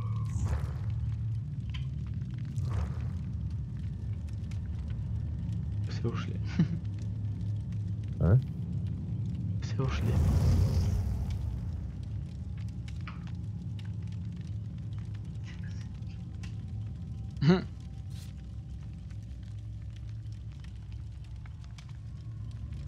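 A campfire crackles and hisses steadily.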